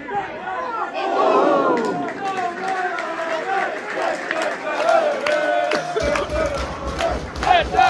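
A crowd roars and cheers.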